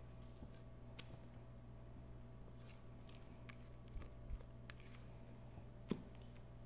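A spatula taps against the rim of a bowl.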